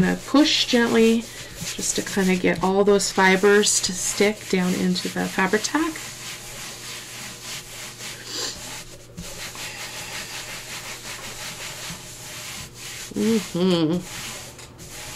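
Hands smooth and press down paper with a soft rustle.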